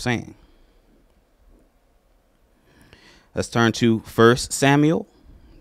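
A man speaks slowly and calmly into a microphone, heard through loudspeakers.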